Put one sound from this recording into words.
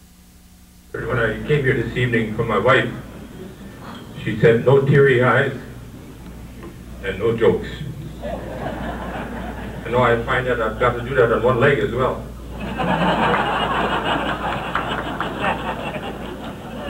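An elderly man speaks slowly into a microphone in a large echoing hall.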